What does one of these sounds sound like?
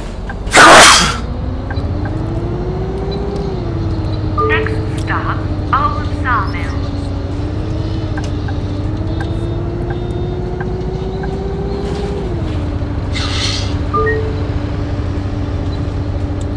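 A bus engine hums and rises in pitch as the bus speeds up.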